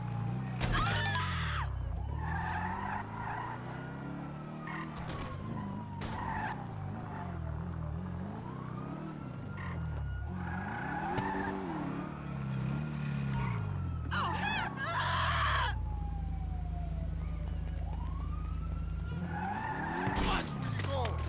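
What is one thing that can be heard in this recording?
A car engine revs up and down, rising and falling in pitch.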